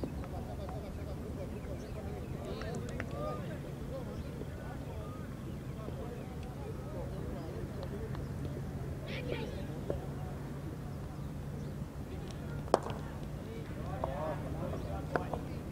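Men call out to each other at a distance outdoors.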